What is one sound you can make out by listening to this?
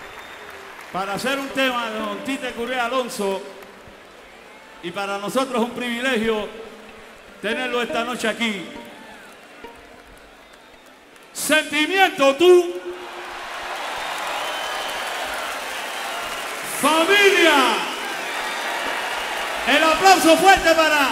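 A man sings in short phrases through a microphone and loudspeakers.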